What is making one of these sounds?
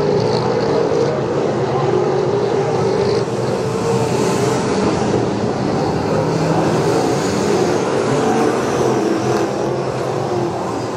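Several race car engines roar loudly and steadily close by.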